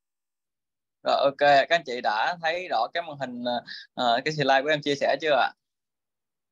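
A young man speaks calmly through an online call.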